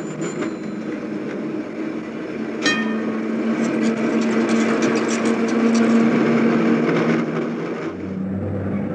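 A tram rumbles along rails.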